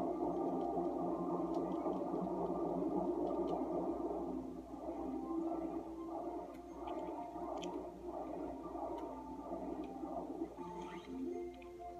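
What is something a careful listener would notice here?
Video game music plays from a television speaker nearby.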